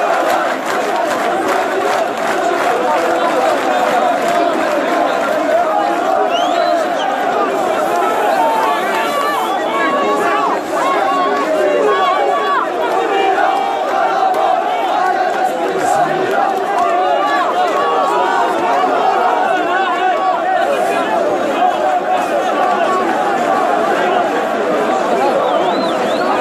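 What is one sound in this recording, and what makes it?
A large crowd of men chants and shouts loudly together outdoors.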